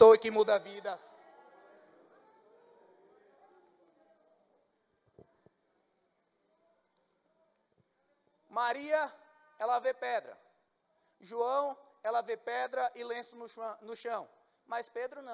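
A man speaks with animation into a microphone, heard through loudspeakers in a reverberant hall.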